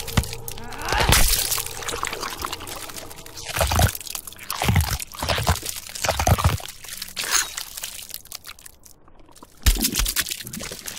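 Heavy blows land with deep, crunching thuds.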